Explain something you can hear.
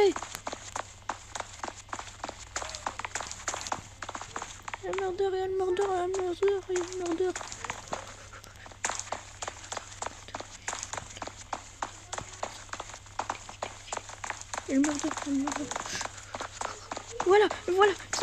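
Quick footsteps patter steadily on hard ground.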